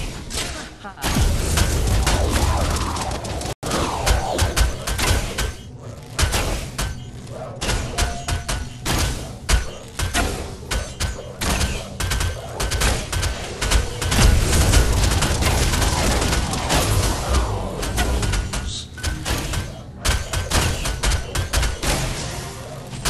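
Heavy game explosions boom with deep rumbling.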